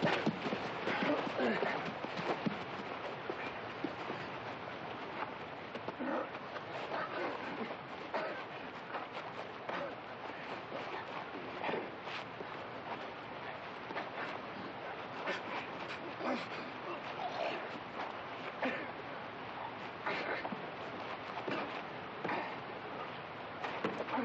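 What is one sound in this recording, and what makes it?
Men grunt and struggle in a fistfight.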